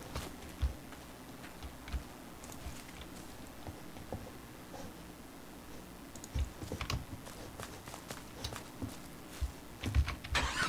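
Footsteps rustle through dense bushes.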